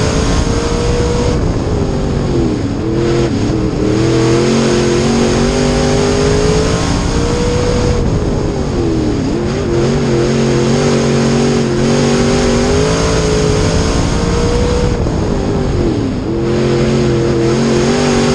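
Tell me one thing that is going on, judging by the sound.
A race car engine roars loudly up close, its pitch dropping and climbing again over and over.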